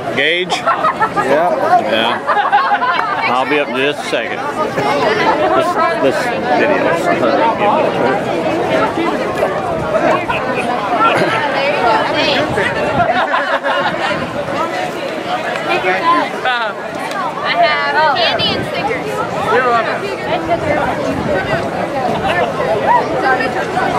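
A crowd of people chatter all around, close by.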